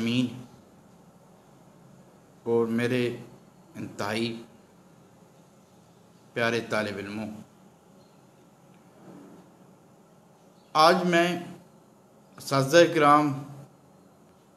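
A middle-aged man speaks calmly into a nearby microphone in short phrases with pauses.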